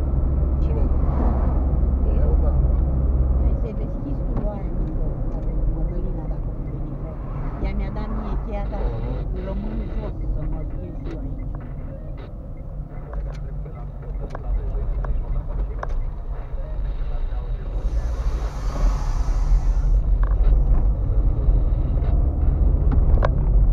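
Tyres rumble on the road surface.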